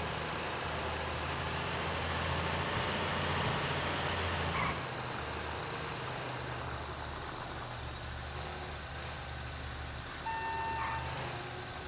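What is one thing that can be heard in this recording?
A diesel container handler rumbles as it drives.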